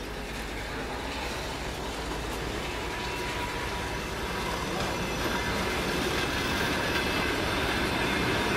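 Footsteps shuffle along.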